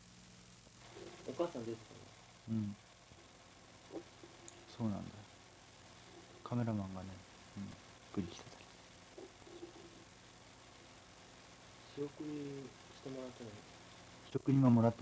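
A young man speaks quietly and close by.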